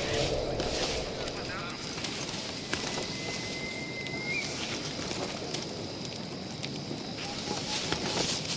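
Leaves rustle softly as someone creeps through bushes.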